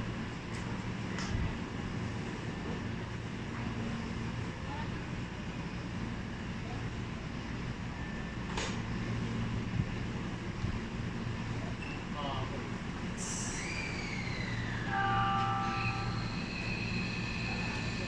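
A train's engine hums steadily as it idles at a platform.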